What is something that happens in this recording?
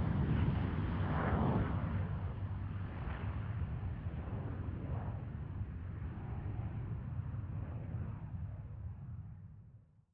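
Propeller engines drone loudly overhead as aircraft fly past, slowly fading toward the end.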